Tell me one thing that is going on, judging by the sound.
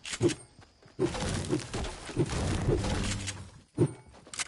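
A game pickaxe chops into a tree.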